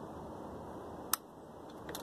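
A switch on a handlebar clicks.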